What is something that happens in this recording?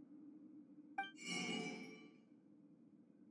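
A bright chime rings out as a menu opens.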